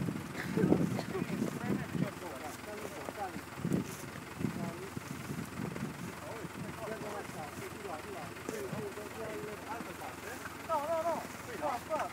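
Several adults talk casually nearby outdoors.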